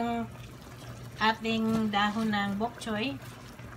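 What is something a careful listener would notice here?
Leafy greens drop softly into a pot of broth.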